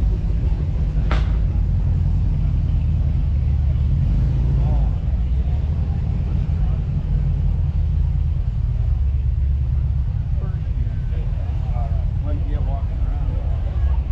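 A crowd murmurs and chatters in the distance.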